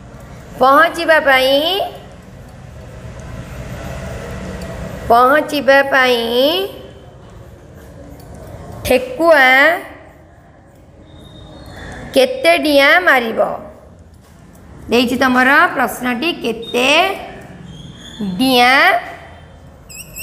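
A woman speaks slowly and clearly, as if teaching, close by.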